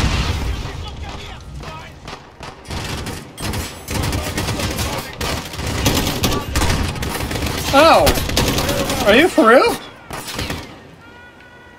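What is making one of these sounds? Rifle shots crack in quick bursts with echoing booms.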